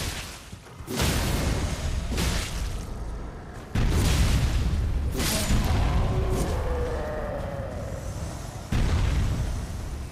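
Heavy blows land with loud, booming thuds.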